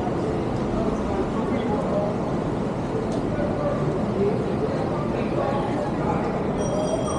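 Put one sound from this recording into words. Street traffic rumbles steadily nearby.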